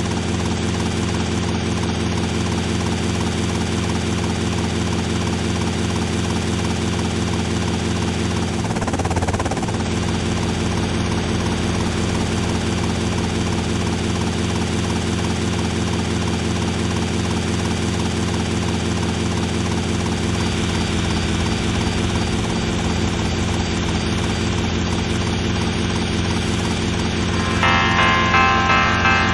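A helicopter's rotor thumps and its engine whirs steadily throughout.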